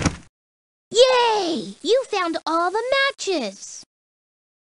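A man speaks in a lively, high cartoon voice.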